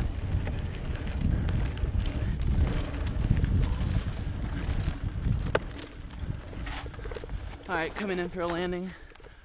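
Bicycle tyres rumble over a bumpy dirt trail.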